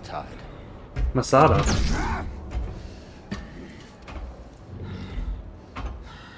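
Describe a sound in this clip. A laser sword hums and swooshes.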